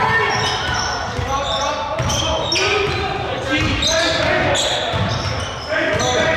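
A basketball bounces on a hard floor with dull thumps.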